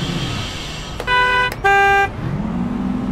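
A bus door warning chime sounds twice.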